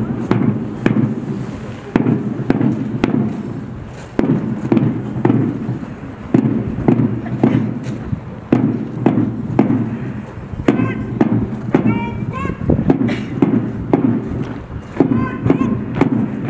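Soldiers' boots stamp in step on hard ground.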